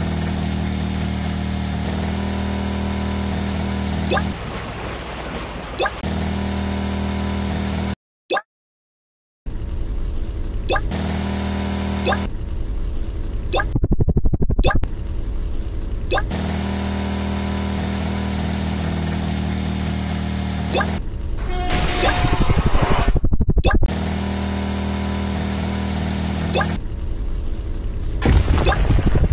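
A small motor engine hums as a vehicle speeds along.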